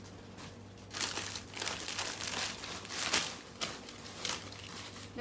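Plastic bags crinkle as a young woman sorts through them.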